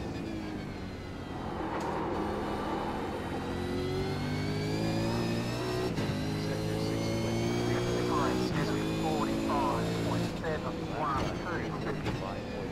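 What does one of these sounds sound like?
A racing car engine roars and changes pitch as it shifts gears.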